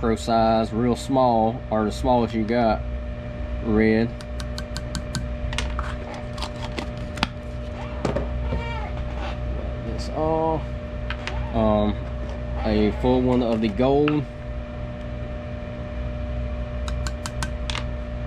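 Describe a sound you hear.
A plastic spoon scrapes and taps inside a small plastic tub.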